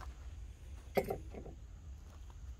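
A metal bow saw clatters as it is set down on a wooden table.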